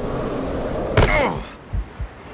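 A person lands with a heavy thud.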